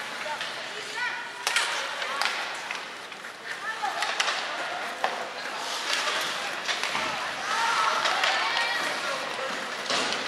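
Young men shout to each other across the rink.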